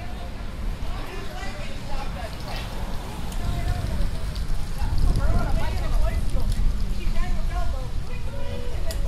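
Adults chatter nearby outdoors.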